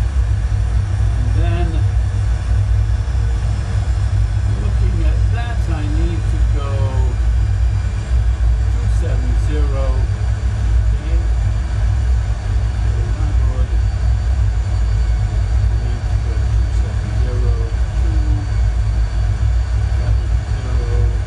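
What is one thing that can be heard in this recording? A jet engine drones with a steady deep rumble.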